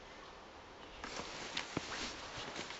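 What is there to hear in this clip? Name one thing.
A hand rubs and bumps against the recorder up close.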